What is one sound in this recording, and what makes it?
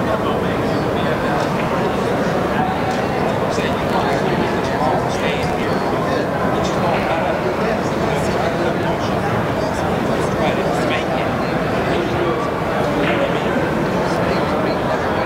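A large hall echoes with the steady murmur of many people talking.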